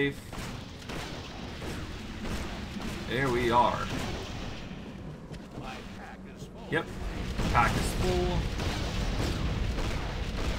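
Magic spells blast and crackle in quick bursts.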